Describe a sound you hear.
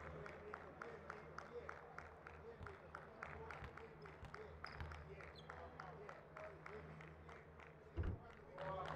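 A man claps his hands steadily and quickly.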